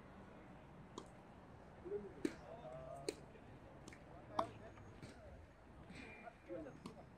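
Tennis balls are struck with rackets outdoors.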